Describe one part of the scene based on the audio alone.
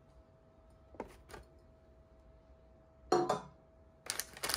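A glass dome clinks against a wooden tray.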